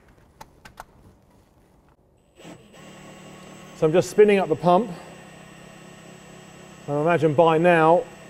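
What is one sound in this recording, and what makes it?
A cordless power drill whirs briefly.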